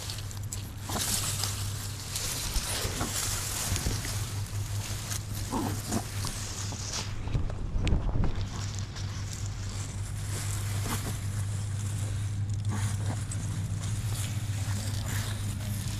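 Grass leaves rustle and brush close by.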